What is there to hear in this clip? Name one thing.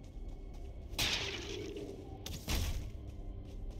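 Bones shatter and crumble.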